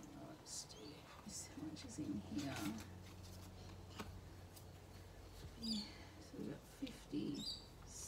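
Paper banknotes rustle and crinkle as they are handled.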